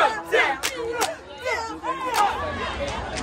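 Young women clap their hands sharply.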